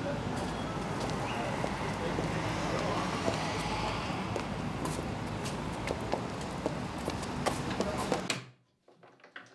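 Street noise hums steadily outdoors.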